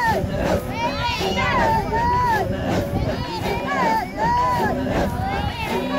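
Women sing in high voices nearby.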